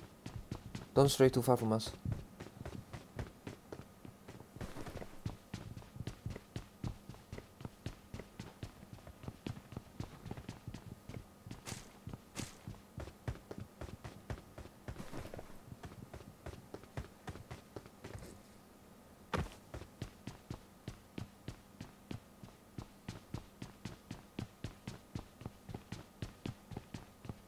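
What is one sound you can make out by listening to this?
Footsteps clang quickly on metal stairs and grating.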